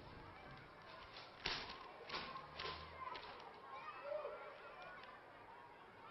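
Pages rustle and flip as a notebook is leafed through.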